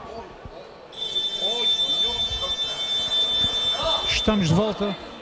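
A whistle blows sharply.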